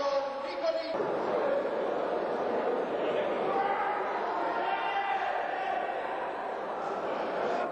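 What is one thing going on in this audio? Men shout excitedly nearby.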